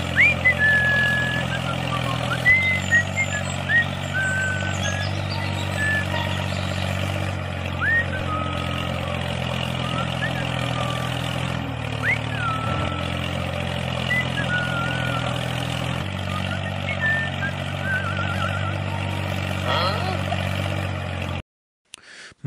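A toy tractor's engine hums steadily.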